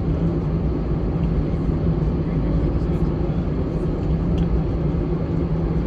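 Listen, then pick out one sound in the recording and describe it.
Jet engines roar steadily from inside an aircraft cabin as the plane taxis.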